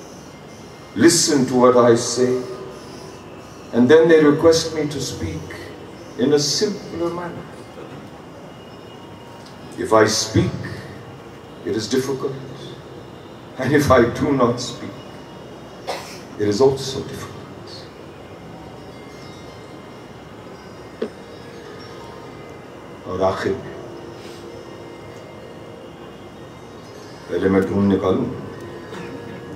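An elderly man reads out slowly into a microphone, with long pauses.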